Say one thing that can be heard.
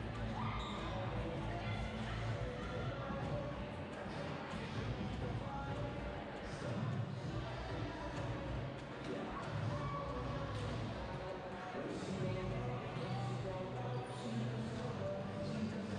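A volleyball thumps against hands and the floor.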